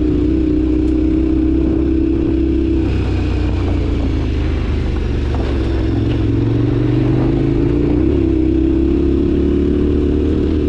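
A motorcycle engine hums steadily, its pitch shifting slightly.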